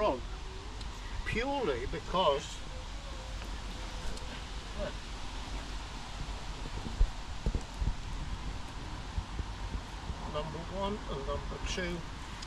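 An elderly man speaks quietly nearby.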